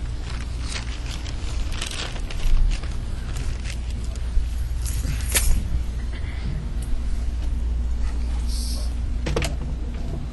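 A man's clothing rustles as he moves about close by.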